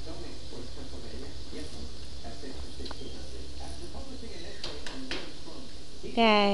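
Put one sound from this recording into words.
A plastic baby rattle shakes and clicks.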